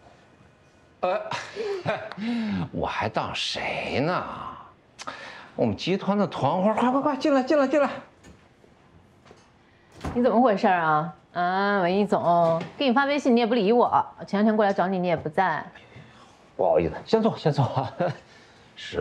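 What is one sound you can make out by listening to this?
A man talks cheerfully up close.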